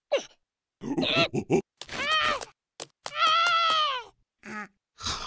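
A small cartoon bug whines and mumbles in a squeaky voice.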